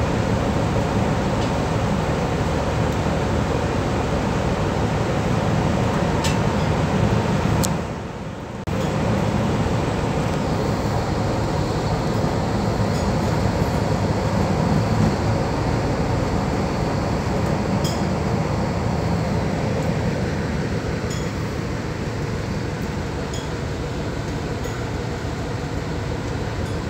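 Rough sea waves roll and break close by, with steady rushing water.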